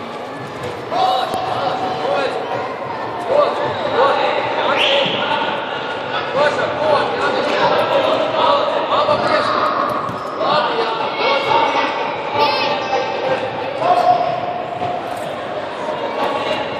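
Young children shout and call out with excitement in a large echoing hall.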